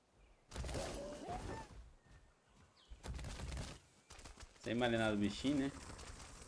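Heavy footsteps of a large animal thud on the ground.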